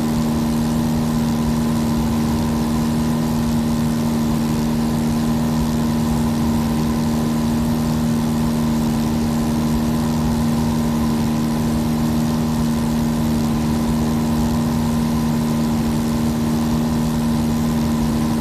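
A small propeller plane's engine drones steadily, heard from inside the cockpit.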